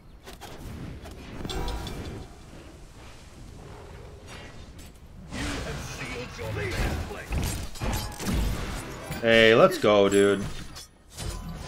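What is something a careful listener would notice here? Game combat effects whoosh and crackle.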